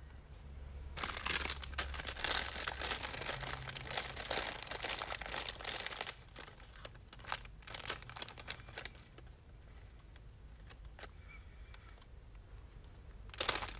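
Paper pieces rustle and tap on a table.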